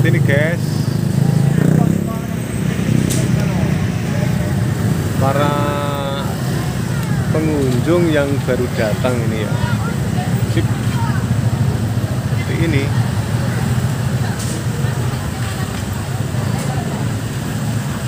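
Motorbike engines idle and rumble nearby.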